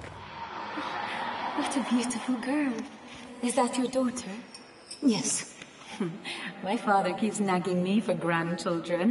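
A young woman speaks softly and calmly.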